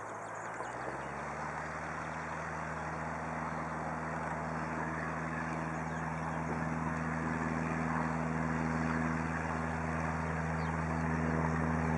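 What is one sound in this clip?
A single-engine propeller plane drones on its takeoff run.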